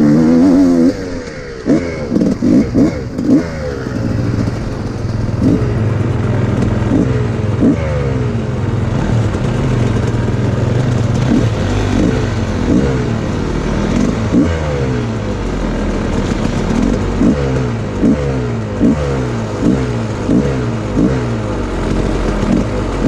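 Another dirt bike engine idles and putters nearby, with short revs.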